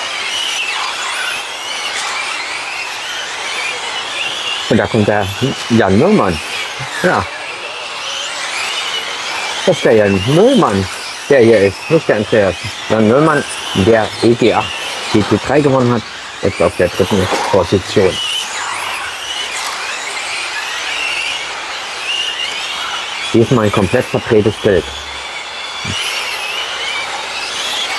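Small model cars whine at high pitch.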